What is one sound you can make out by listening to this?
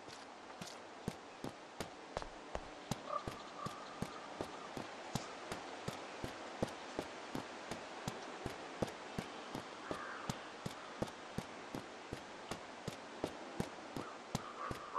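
Footsteps crunch steadily on gravel and dirt.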